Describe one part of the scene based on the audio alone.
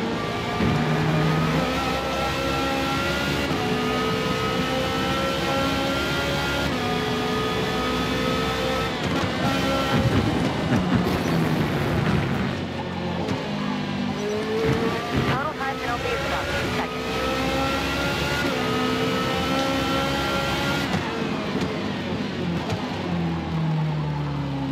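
A racing car engine roars at high revs, rising and dropping in pitch as it shifts gears.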